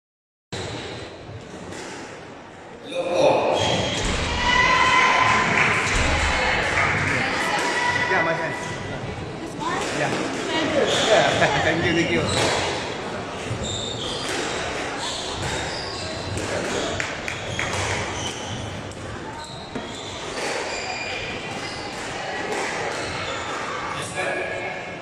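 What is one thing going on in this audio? A squash ball smacks against rackets and walls in an echoing hall.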